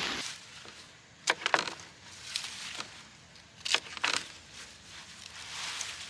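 Turnips knock softly into a plastic crate.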